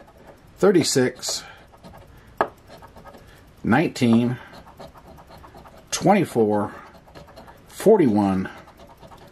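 A coin scrapes across a scratch card.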